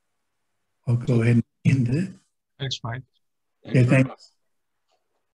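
A middle-aged man speaks calmly and close to a microphone, as if on an online call.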